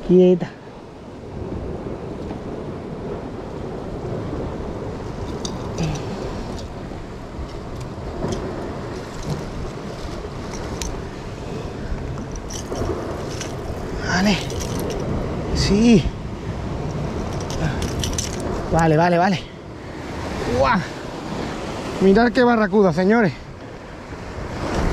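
Waves wash and crash against rocks nearby.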